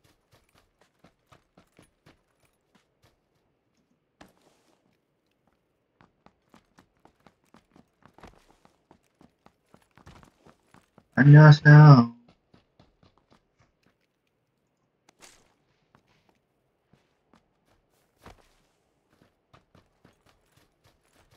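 Quick footsteps run over dry ground.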